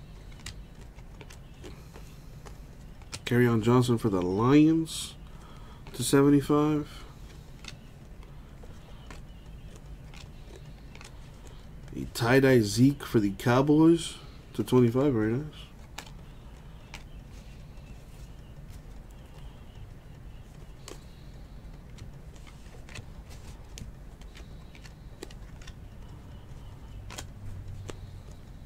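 Stiff trading cards click and rustle as hands flip through them.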